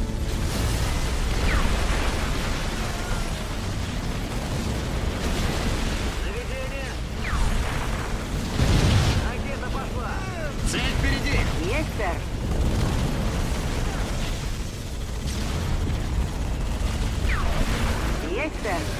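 Gunfire and laser blasts crackle steadily in a battle.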